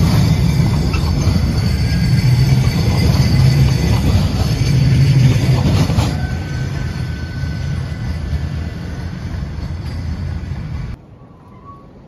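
A tram rumbles past close by on its rails.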